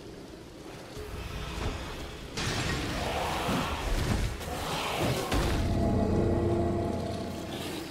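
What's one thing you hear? Heavy blade strikes crash loudly.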